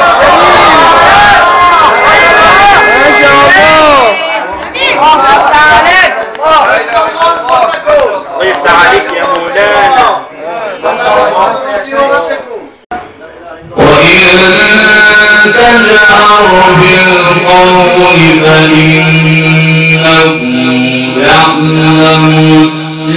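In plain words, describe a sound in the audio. A young man chants melodically into a microphone, heard through a loudspeaker in an echoing room.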